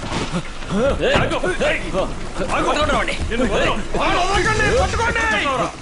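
A man talks excitedly close by.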